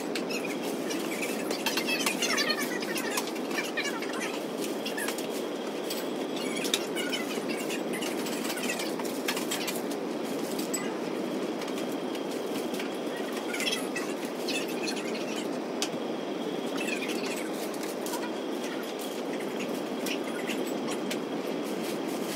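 Wrapping paper rustles and crinkles close by.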